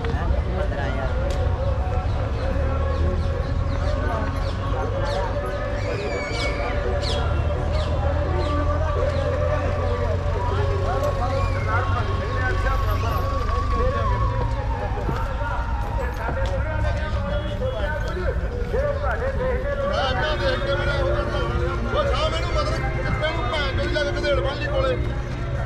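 A crowd of men chatter and call out nearby outdoors.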